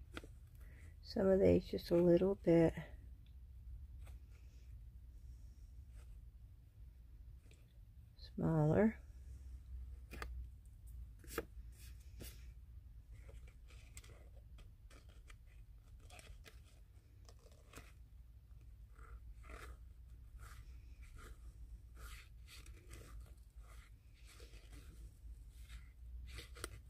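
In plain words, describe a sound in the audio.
Paper rustles softly as it is turned in the hands.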